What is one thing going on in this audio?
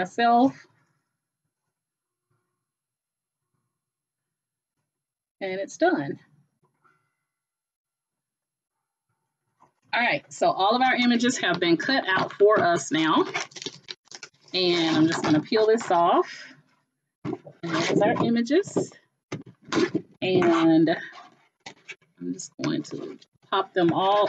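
A middle-aged woman talks calmly and closely into a microphone, with pauses.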